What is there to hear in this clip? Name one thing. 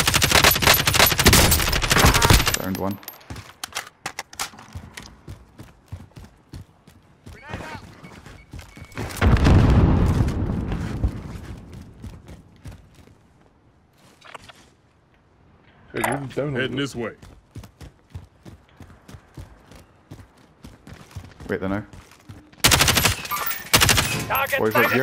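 A rifle fires rapid bursts of loud shots.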